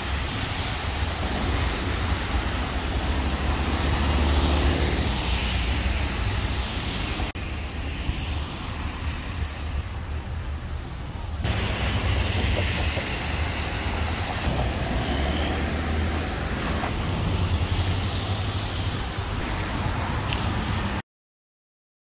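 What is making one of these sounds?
Cars drive past on a wet street with a hissing of tyres.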